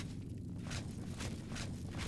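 Torches crackle softly.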